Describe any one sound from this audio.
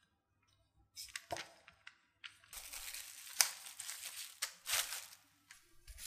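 Plastic wrap crinkles and rustles.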